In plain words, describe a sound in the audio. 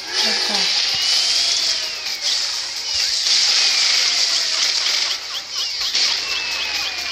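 Video game blasts and hit effects play in rapid succession.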